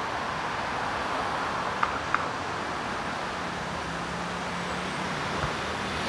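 Cars drive past on a busy city street.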